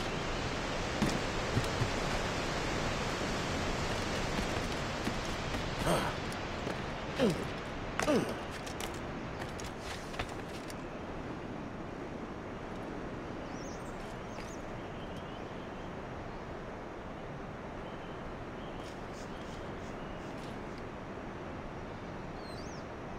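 Hands and feet scrape and knock on rock during a climb.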